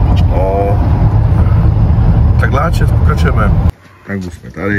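A low engine rumble fills the inside of a car.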